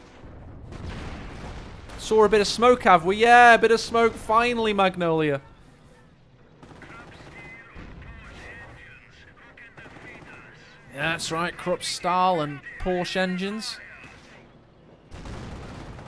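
Gunfire and explosions rattle and boom in a battle.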